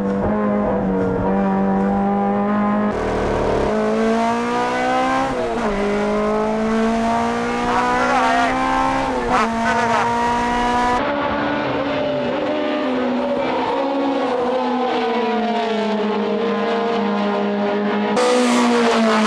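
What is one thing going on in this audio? A race car engine revs hard and whines through the gears.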